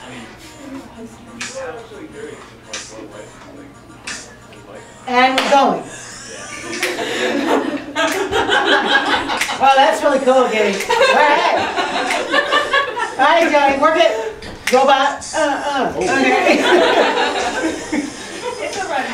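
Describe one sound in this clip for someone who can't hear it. A group of adults chatter and laugh nearby in a room.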